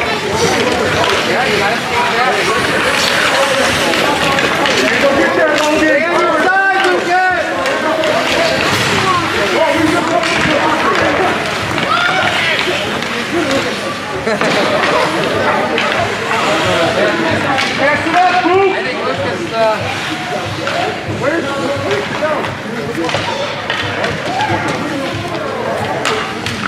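A crowd of children shouts and cheers throughout.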